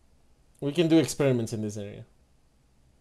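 A man speaks briefly with animation into a microphone.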